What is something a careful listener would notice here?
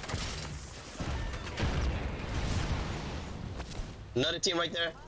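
Explosions rumble and roar in a video game.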